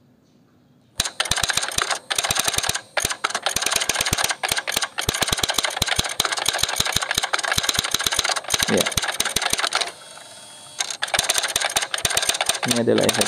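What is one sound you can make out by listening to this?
A typewriter clacks rapidly.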